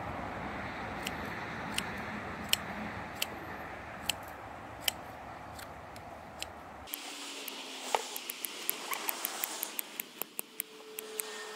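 Scissors snip through dry moss with sharp clicks.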